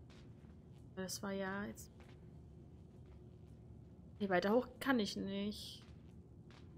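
A young woman speaks briefly and softly into a microphone.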